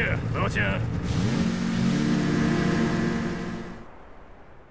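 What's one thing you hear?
A snowmobile engine revs up and roars away, fading into the distance.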